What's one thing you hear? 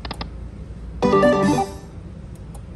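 A slot machine plays a short, bright chiming jingle for a win.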